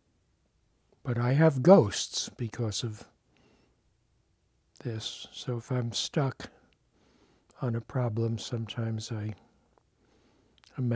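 An elderly man speaks calmly and thoughtfully close to a microphone, with long pauses.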